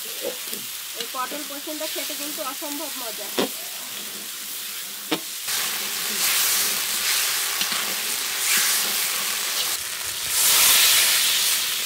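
Food sizzles loudly in hot oil.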